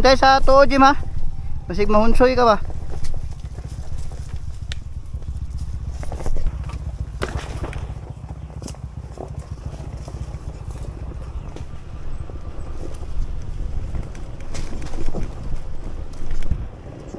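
Tyres crunch over a dirt trail.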